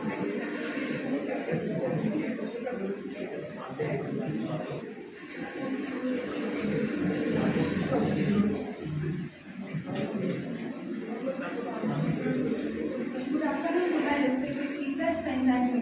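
A young woman speaks steadily into a microphone, heard through a loudspeaker in a reverberant room.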